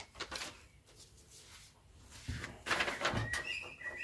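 Paper rustles as a young man handles sheets.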